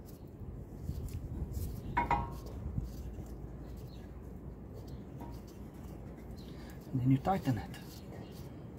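A hand tool clinks and scrapes against metal car parts close by.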